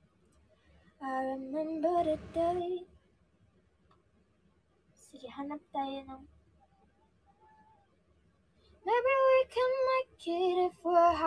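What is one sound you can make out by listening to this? A young woman sings in short phrases close to a phone microphone, with pauses between them.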